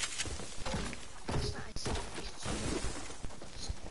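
Footsteps crunch across snow.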